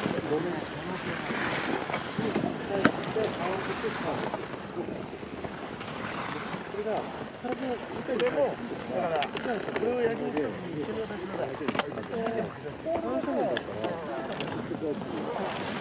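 Skis scrape and hiss on hard groomed snow as a skier carves turns.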